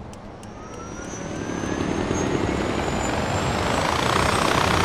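A winch whirs and rises steadily in pitch as it reels in a cable.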